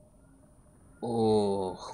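A person speaks close by.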